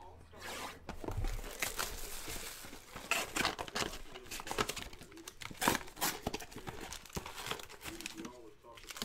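Foil packs crinkle and rustle in hands.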